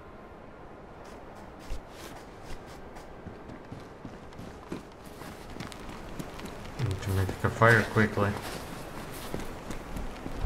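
Footsteps crunch steadily on gravel and snow.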